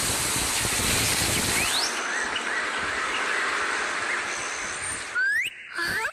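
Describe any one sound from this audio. Water sprays in a hissing, rushing jet from a hose.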